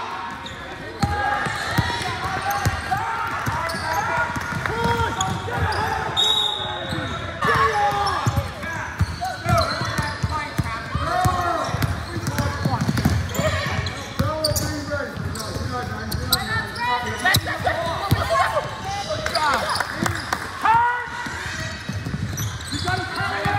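Young people shout and call out to each other across the gym.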